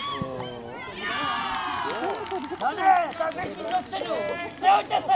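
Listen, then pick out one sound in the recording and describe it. Young children shout and call out excitedly in the open air.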